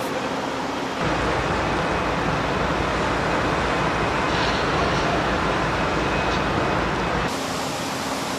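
Tugboat engines rumble low nearby.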